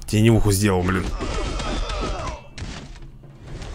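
Heavy blows land with thuds as a fighter falls.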